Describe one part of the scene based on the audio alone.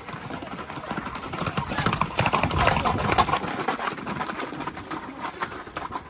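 Horses' hooves clatter on a paved road.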